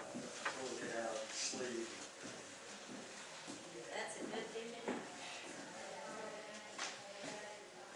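Footsteps cross a wooden floor.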